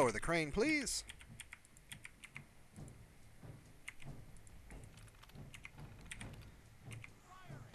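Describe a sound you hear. Keys click softly and quickly.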